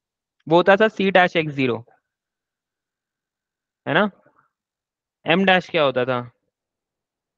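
A young man speaks calmly into a close microphone, as on an online call.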